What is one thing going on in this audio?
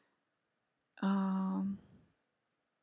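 A woman hums a short, steady note close by.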